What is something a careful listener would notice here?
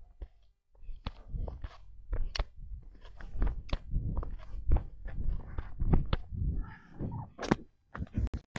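Running footsteps thud on dry ground.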